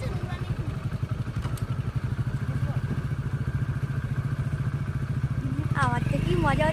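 A motorbike engine idles with a steady low putter close by.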